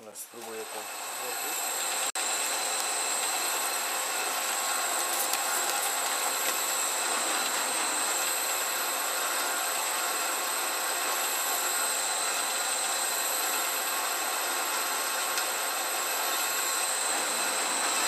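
A drill bit grinds and scrapes through metal.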